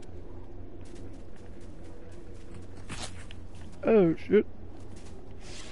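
Footsteps patter quickly over dirt and grass.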